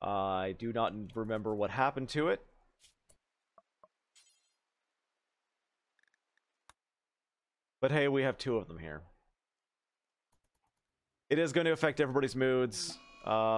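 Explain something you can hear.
A man speaks with animation, close to a microphone, in short bursts.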